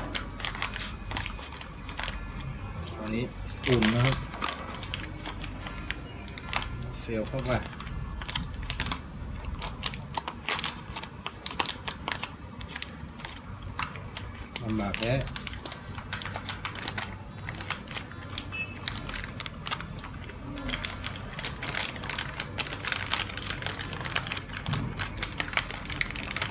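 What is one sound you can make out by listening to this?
Stiff paper packaging crinkles and rustles in someone's hands.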